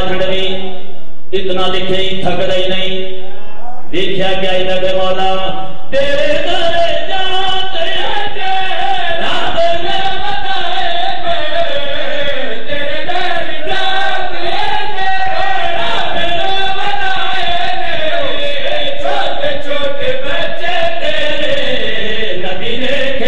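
A man chants loudly into a microphone through loudspeakers.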